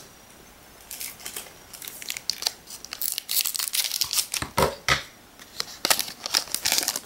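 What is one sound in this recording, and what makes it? A foil wrapper crinkles as it is handled.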